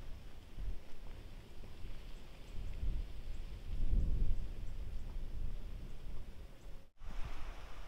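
Footsteps crunch on a dirt trail and fade into the distance.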